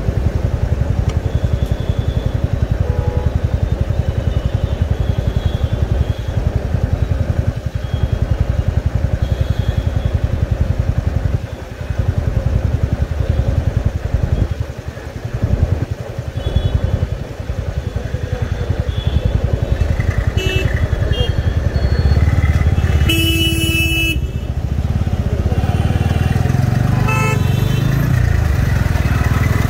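A motorcycle engine idles with a low, steady throb.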